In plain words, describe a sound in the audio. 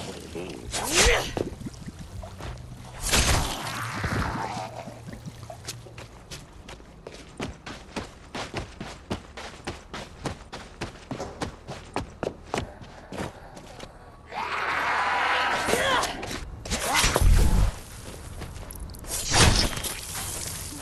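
Heavy blows strike a zombie with a thud.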